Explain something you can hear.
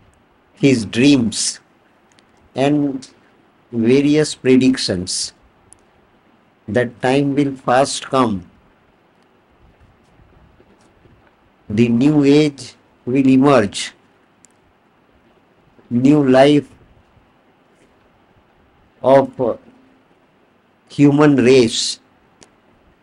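An elderly man speaks calmly into a microphone, in short phrases with pauses.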